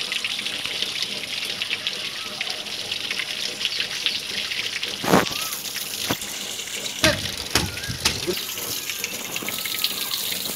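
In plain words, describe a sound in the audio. Water splashes and drips steadily onto a wet floor.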